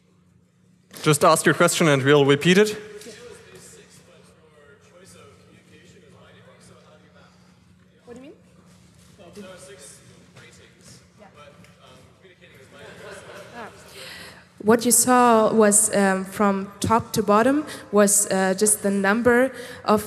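A young woman speaks with animation through a microphone and loudspeakers.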